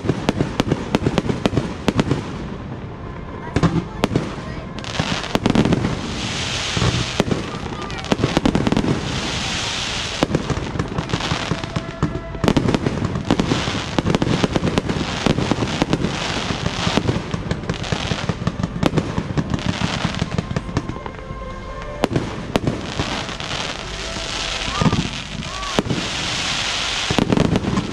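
Aerial firework shells boom and crack in rapid succession.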